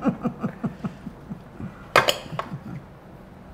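A knife cuts through a tomato on a plate.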